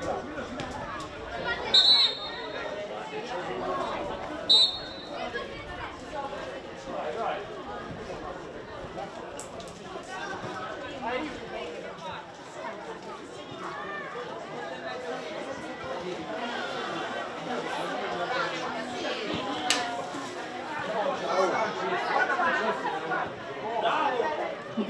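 Boys shout and call to each other across an open field.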